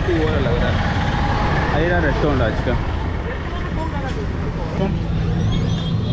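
Motorbike engines hum on a busy street.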